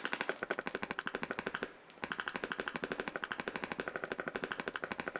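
Blocks break in rapid, steady clicks, with a short pause.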